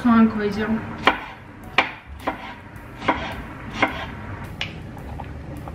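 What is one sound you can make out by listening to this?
A knife chops vegetables on a cutting board with sharp knocks.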